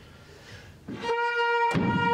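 A small pipe plays.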